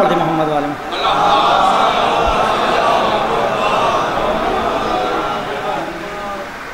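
A seated crowd calls out and cheers in praise.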